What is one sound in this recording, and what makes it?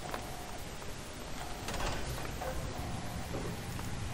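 A heavy metal door creaks open.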